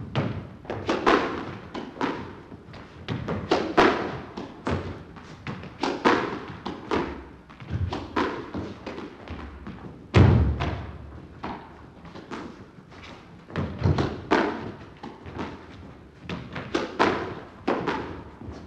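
Sneakers squeak and patter on a wooden court floor.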